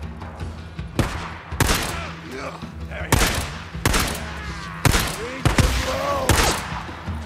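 Pistol shots crack loudly, one after another, with a short echo.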